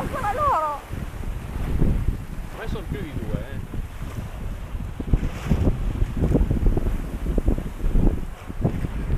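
Choppy waves slosh and splash against a moving boat.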